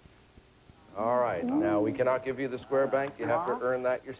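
A man speaks cheerfully into a microphone.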